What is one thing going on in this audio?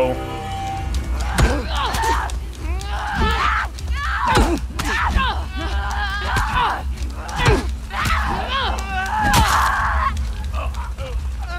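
A creature shrieks and gurgles close by.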